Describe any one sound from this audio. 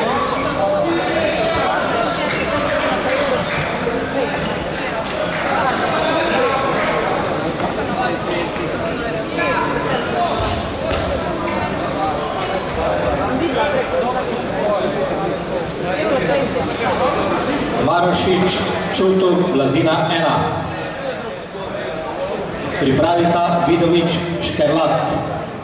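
A crowd in a large echoing hall chatters and calls out throughout.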